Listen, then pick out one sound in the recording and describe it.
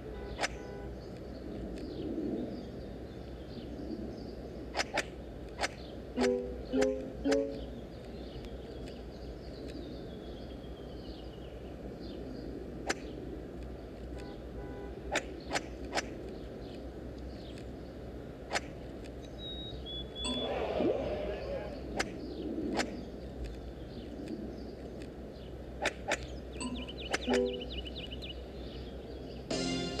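Playing cards flick into place with short, crisp clicks.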